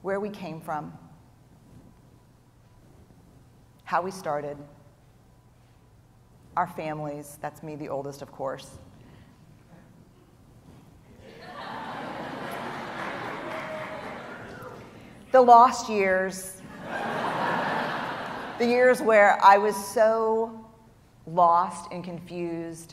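A middle-aged woman speaks with animation through a microphone in a large hall.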